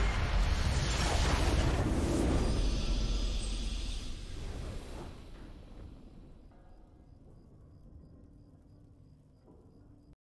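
A bright victory fanfare swells and fades.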